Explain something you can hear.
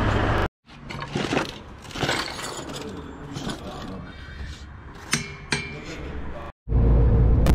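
A wrench clicks and knocks against a wheel nut.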